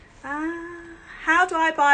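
A woman laughs close by.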